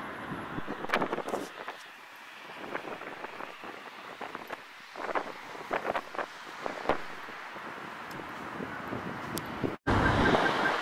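Footsteps tap on paving stones outdoors.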